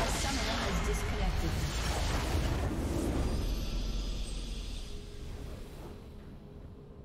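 A huge explosion roars and rumbles, then slowly fades away.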